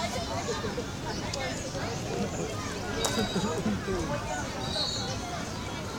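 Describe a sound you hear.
A crowd of children and adults chatter and call out across an open field.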